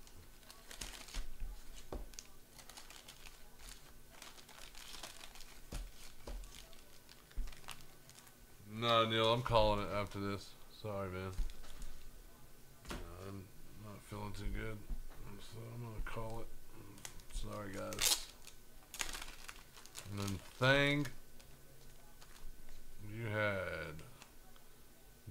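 Plastic card cases click and rustle in someone's hands.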